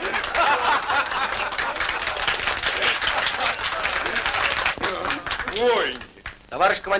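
A group of men laugh loudly and cheer.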